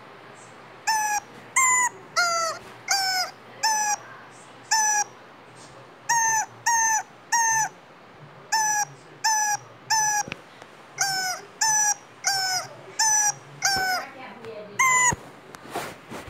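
Rubber chickens squeak in a quick tune, one short squeal after another.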